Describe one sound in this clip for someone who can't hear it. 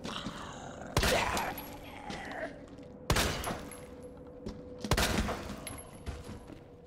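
A pistol fires loud single shots that ring out.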